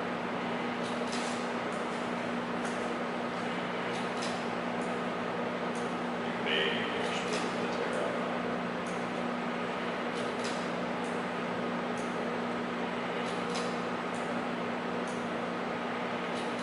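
A plastic cup rubs and scrapes against a wire coil.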